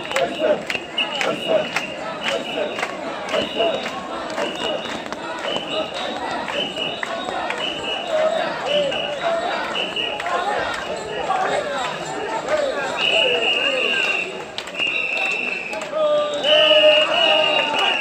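A crowd of men chants in rhythm outdoors.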